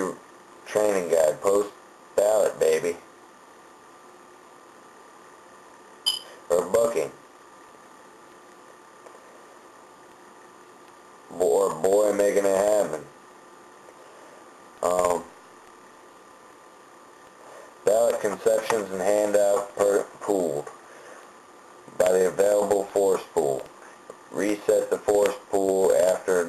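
A young man talks casually into a nearby microphone, in short bursts with pauses.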